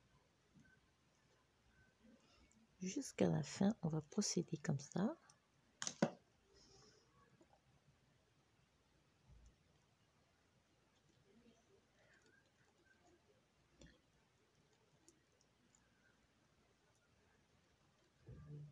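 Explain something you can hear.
Knitting needles click softly against each other.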